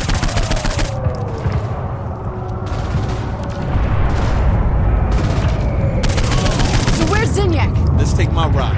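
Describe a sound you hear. A laser gun fires in rapid, crackling bursts.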